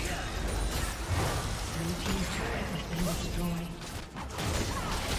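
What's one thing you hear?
Video game spells crackle and burst during a fight.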